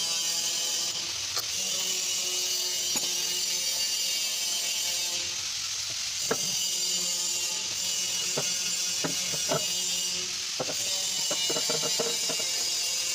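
Metal tools clink and knock against engine parts.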